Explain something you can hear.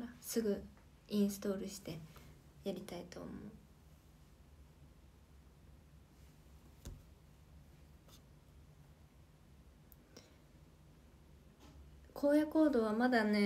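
A young woman speaks softly and close to a microphone.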